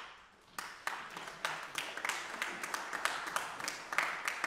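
Footsteps thud across a wooden stage in a large echoing hall.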